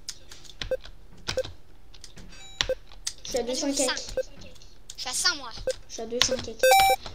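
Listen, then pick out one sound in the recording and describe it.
Short electronic blips sound again and again as a game character jumps.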